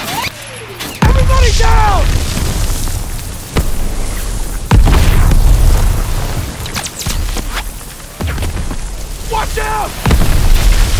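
Heavy explosions boom nearby, one after another.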